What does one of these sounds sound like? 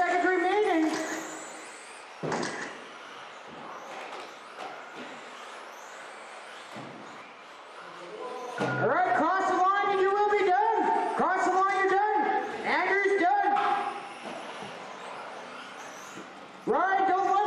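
Remote-control cars whine and rev their small electric motors in bursts.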